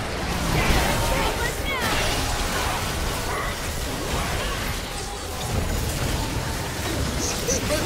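Magic blasts and clashing effects burst in a chaotic video game battle.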